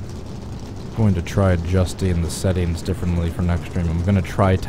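A race car engine revs up and down repeatedly.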